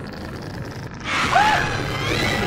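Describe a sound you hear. A young man screams loudly into a close microphone.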